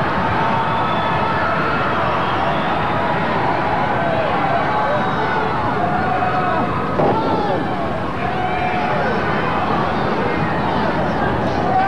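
A large crowd cheers and shouts throughout in an echoing arena.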